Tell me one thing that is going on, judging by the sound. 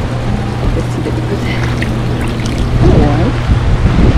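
Water bubbles and churns in a hot tub.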